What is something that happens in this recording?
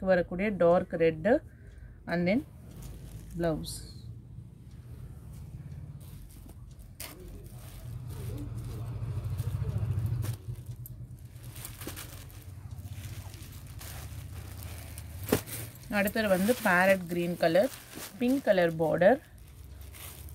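Silk cloth rustles softly as hands unfold and smooth it.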